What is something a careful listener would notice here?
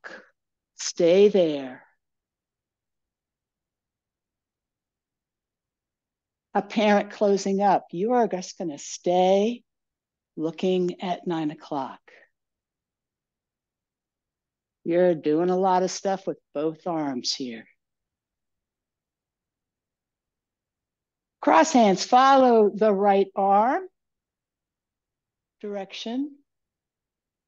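A woman speaks calmly in short phrases, close to the microphone.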